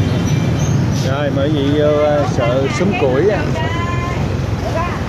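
A woman speaks nearby in a raised, sing-song voice.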